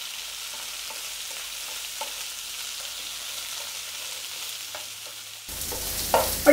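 Vegetables sizzle in a frying pan.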